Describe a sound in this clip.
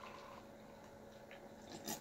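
A young woman gulps a drink.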